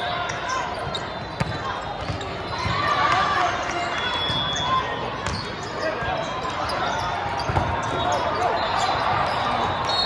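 A volleyball is struck with sharp smacks.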